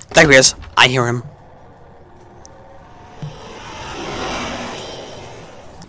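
A wooden cabinet door creaks slowly shut.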